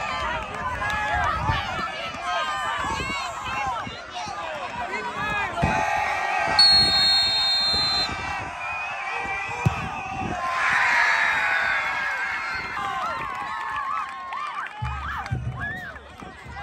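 A crowd of men and women talks and shouts excitedly outdoors.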